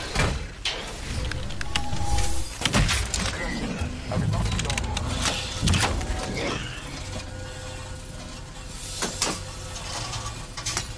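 Menu clicks and beeps sound from a video game interface.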